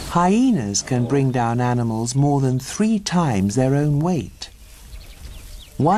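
A zebra tears and chews at dry grass.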